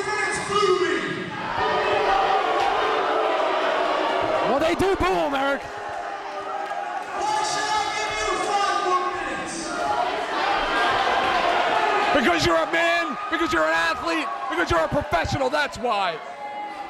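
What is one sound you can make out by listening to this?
A young man shouts into a microphone, heard through loudspeakers in a large echoing hall.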